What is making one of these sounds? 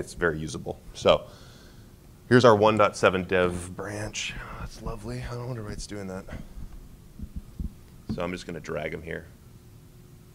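A man speaks into a microphone with a slight echo in a large room.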